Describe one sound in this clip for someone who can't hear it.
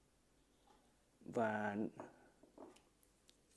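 A ceramic cup is set down on a table with a light clink.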